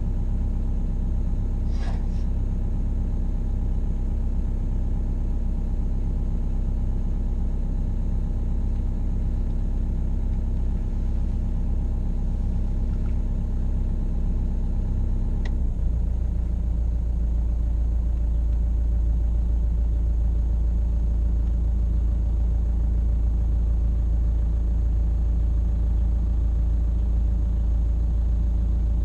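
A heavy diesel engine rumbles steadily from inside a cab.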